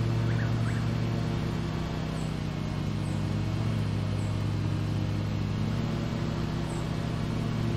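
A lawn mower engine drones steadily.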